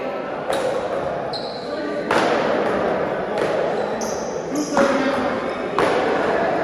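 A plastic ball is struck with paddles in a large echoing hall.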